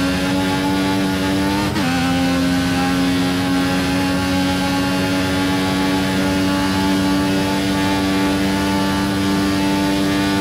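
A racing car engine screams at high revs and drops in pitch as it shifts up a gear.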